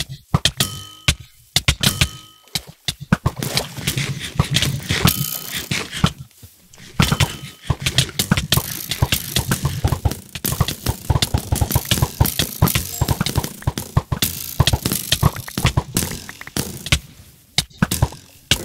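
A bow twangs as arrows fly, again and again.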